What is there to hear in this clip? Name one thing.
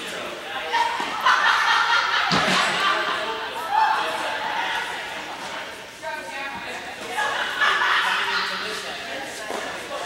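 Young women talk in a large echoing hall.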